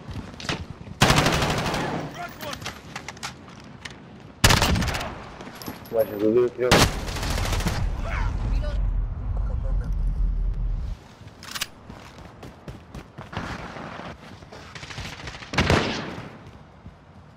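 Gunshots fire in loud, short bursts.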